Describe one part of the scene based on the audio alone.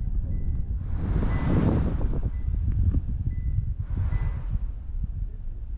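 Cars whoosh past nearby.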